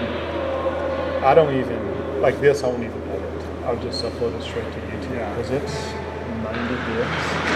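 A man speaks loudly to a group in a large echoing rink.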